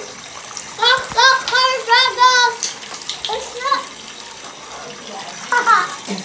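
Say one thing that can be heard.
A young child speaks in a high, animated voice close by.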